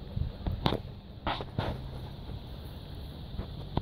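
A dog pants close by.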